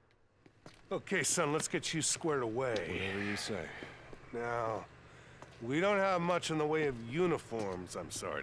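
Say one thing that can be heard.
A gruff middle-aged man talks, close by.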